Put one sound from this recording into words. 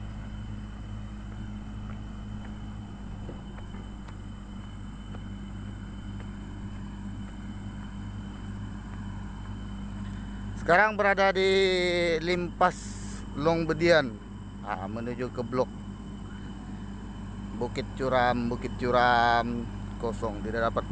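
A heavy road machine's engine rumbles steadily in the distance.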